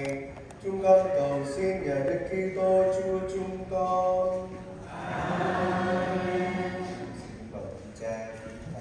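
A man chants slowly through a microphone in a large echoing hall.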